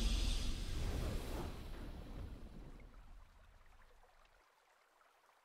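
A booming victory fanfare from a game sounds and fades away.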